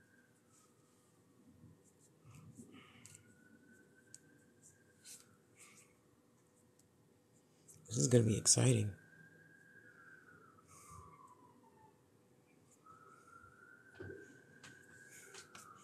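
Thin wire scrapes and rustles softly between fingers.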